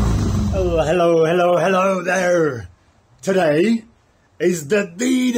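A man talks excitedly and loudly up close.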